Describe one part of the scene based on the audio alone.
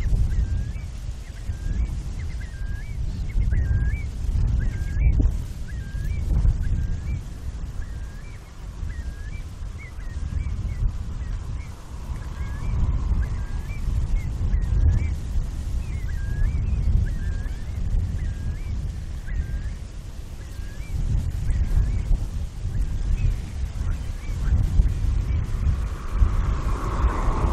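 Wind blows in gusts, rumbling across the microphone outdoors.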